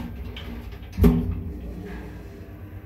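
An elevator door slides shut with a thud.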